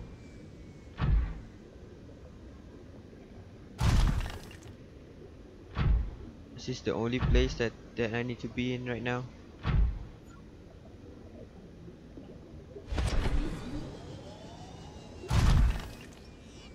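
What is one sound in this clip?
A small submarine's engine whooshes in short bursts underwater.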